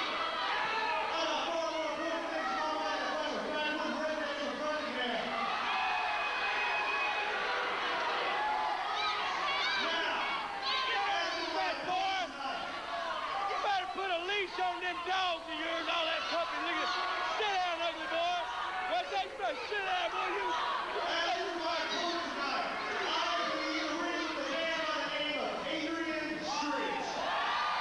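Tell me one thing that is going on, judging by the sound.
A man shouts angrily into a microphone, heard through loudspeakers in a large echoing hall.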